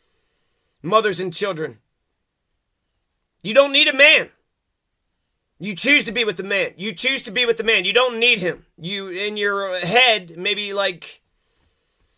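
A man speaks close to a microphone, with animation.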